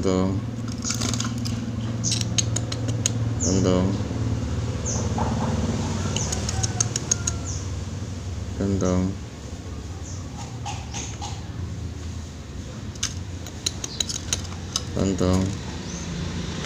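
A small bird pecks with quick light taps.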